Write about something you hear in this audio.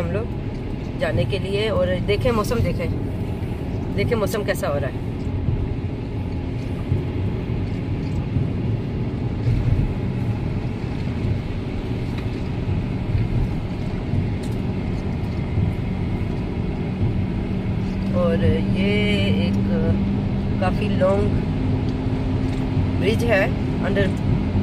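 A car engine rumbles steadily while driving on a wet road.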